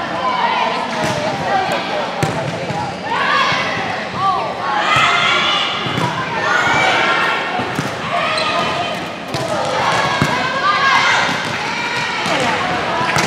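A volleyball thumps off hands and arms.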